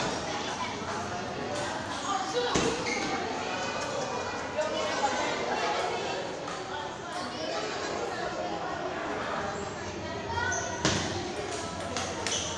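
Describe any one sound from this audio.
A ping-pong ball clicks sharply off paddles and the table in a fast rally.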